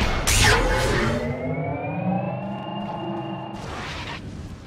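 A rising magical tone hums and swells.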